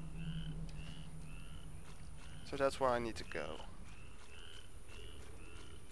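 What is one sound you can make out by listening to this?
Footsteps swish through wet grass.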